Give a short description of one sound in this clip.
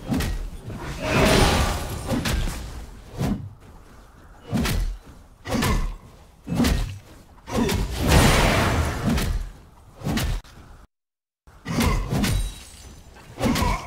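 Magic blasts and sword strikes burst out in quick bursts during a fantasy battle.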